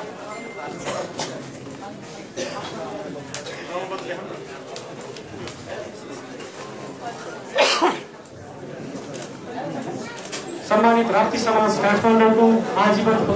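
A crowd of men and women chatters and calls out in a large echoing hall.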